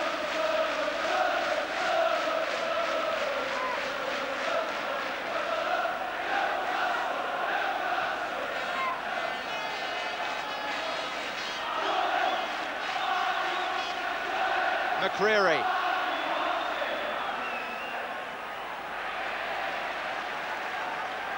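A large stadium crowd sings and chants loudly.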